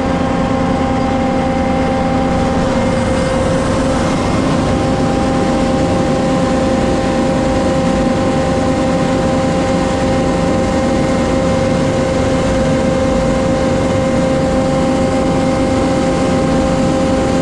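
A truck engine runs loudly and steadily close by.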